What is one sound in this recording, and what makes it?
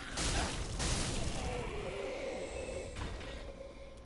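A heavy blade swings and strikes with a loud whoosh.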